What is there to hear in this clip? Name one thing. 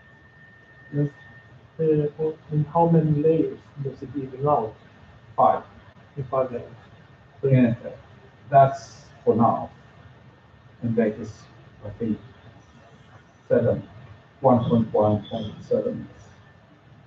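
A man speaks calmly to an audience in a room with a slight echo.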